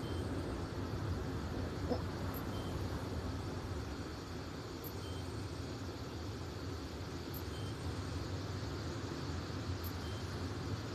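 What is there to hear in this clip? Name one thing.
Wind blows steadily outdoors through trees.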